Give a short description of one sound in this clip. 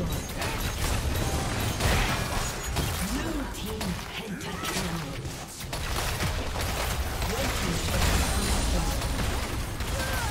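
Magic blasts and weapon blows clash rapidly in a busy fantasy battle.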